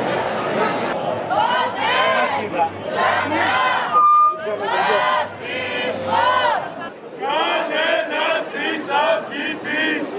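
A group of young women and men chant slogans loudly in unison.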